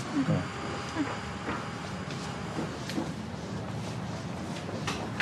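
Footsteps walk away on a hard floor.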